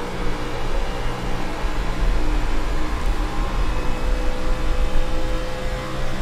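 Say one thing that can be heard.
Other race cars roar past nearby.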